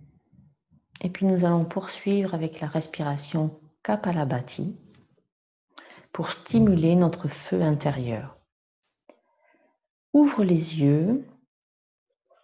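A middle-aged woman speaks calmly and slowly, close by.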